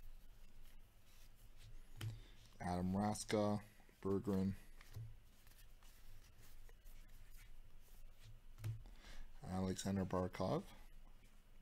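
Trading cards slide and rustle softly between fingers.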